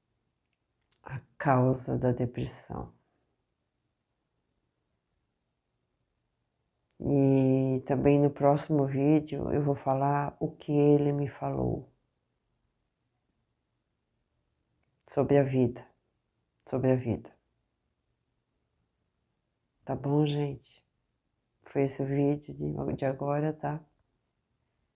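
A middle-aged woman speaks calmly and close up, with pauses between phrases.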